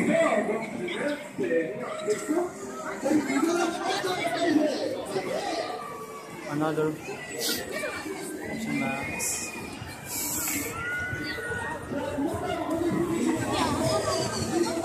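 A crowd of people chatters and calls out nearby in the open air.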